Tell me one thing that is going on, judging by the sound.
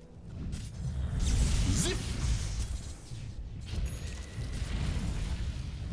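Spell blasts whoosh and crackle in a video game battle.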